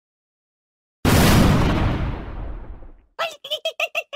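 A small explosion bursts and fades away.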